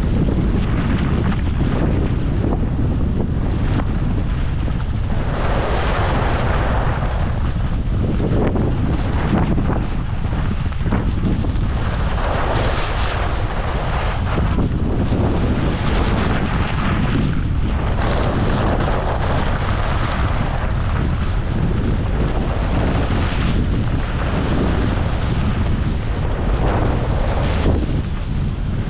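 Skis scrape and hiss over packed snow, swelling with each turn.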